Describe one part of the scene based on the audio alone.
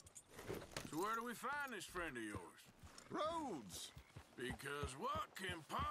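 A horse's hooves thud on soft ground.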